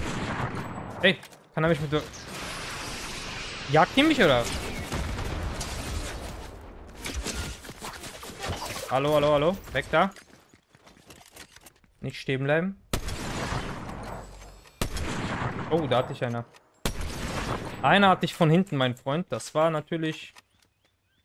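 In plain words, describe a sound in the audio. A man talks through a close microphone.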